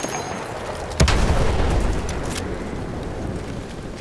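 A shell explodes with a heavy boom that rumbles away.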